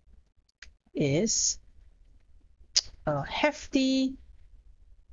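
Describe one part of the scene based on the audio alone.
A young woman speaks calmly and close to a microphone, in short bursts.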